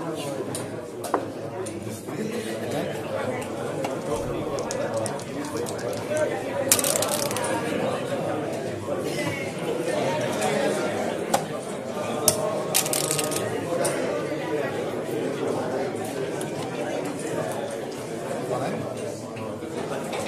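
Backgammon checkers click against the board as they are moved.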